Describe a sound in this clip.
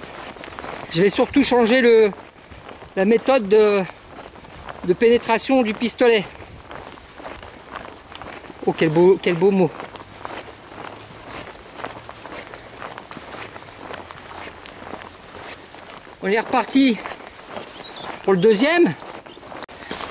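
A man speaks in short bursts close by, his voice muffled through a gas mask.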